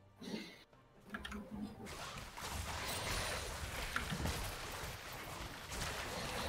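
Spell effects and weapon hits clash and burst in a game fight.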